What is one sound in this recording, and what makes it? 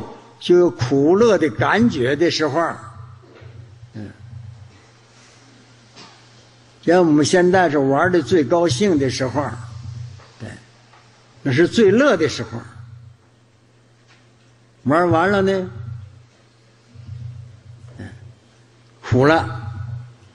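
An elderly man speaks calmly into a microphone in short phrases, with pauses.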